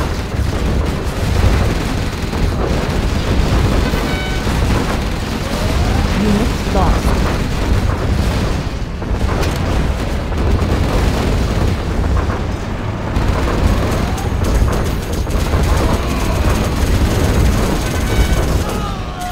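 Explosions and cannon fire boom in a video game battle.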